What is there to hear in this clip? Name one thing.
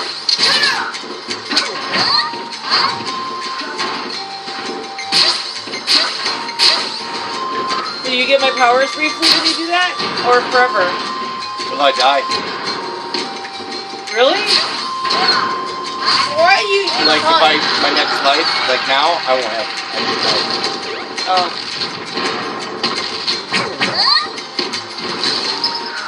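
Video game music with a steady melody plays through a loudspeaker.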